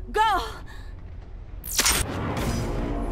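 A revolver fires a loud shot.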